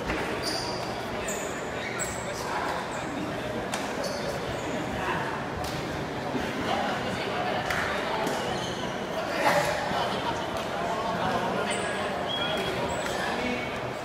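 A badminton shuttlecock is struck with rackets.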